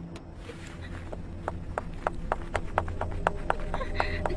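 High heels click quickly on a hard floor.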